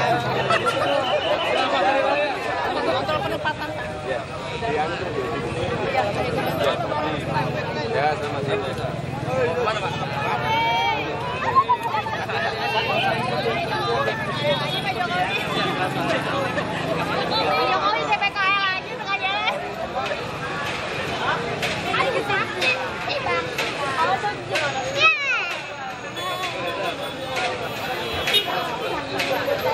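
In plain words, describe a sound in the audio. A large crowd of men and women talks and calls out all around, close by, outdoors.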